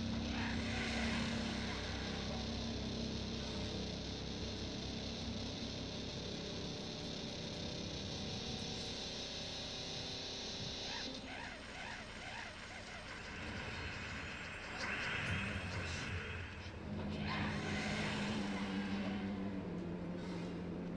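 Fantasy game music plays steadily.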